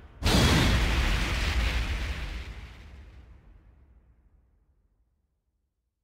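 A loud explosive whoosh bursts and slowly fades away.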